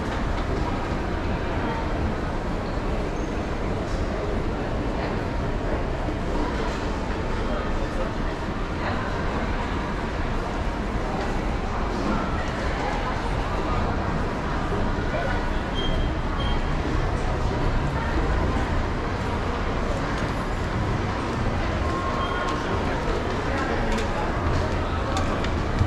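A steady murmur of distant voices fills a large indoor hall.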